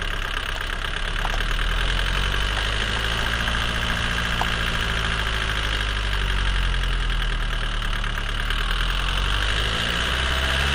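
A car's drive axle spins with a steady whir.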